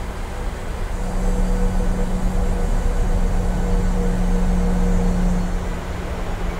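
Jet engines rumble louder for a while and then settle back.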